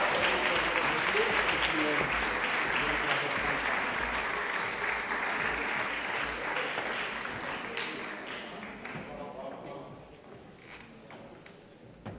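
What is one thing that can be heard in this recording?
An audience applauds in a large echoing hall and the clapping slowly fades.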